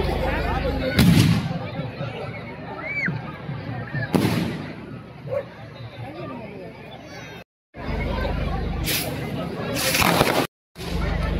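Fireworks bang loudly overhead.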